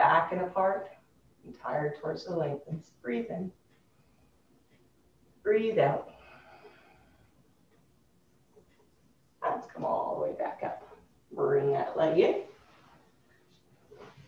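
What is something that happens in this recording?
A woman speaks calmly, giving instructions.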